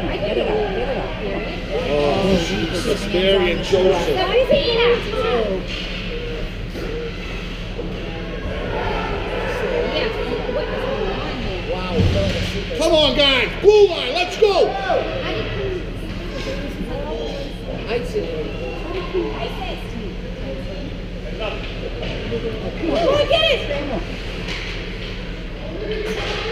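Skate blades scrape across ice in a large echoing hall.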